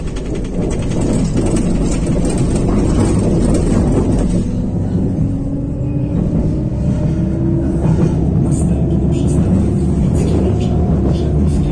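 Tram wheels rattle and squeal over rail joints.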